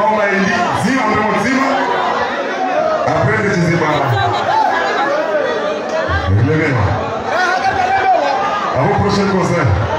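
A man sings loudly into a microphone through loudspeakers, in a large echoing hall.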